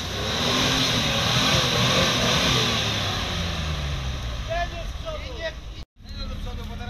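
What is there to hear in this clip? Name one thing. An off-road vehicle's engine revs hard, working through deep mud.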